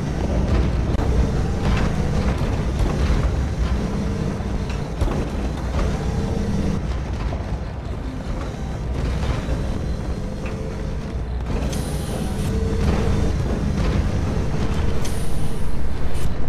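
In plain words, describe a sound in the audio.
Heavy boots step steadily across a hard metal floor.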